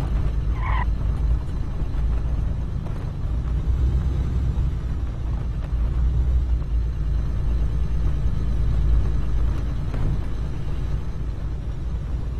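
A heavy vehicle's engine rumbles steadily while driving.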